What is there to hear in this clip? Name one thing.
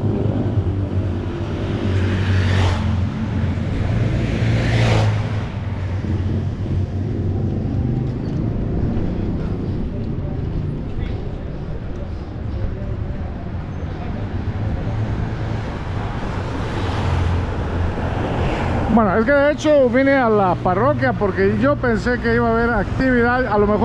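A motorcycle engine hums as it passes along the street.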